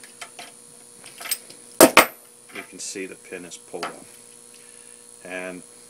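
Metal pieces clatter onto a hard surface.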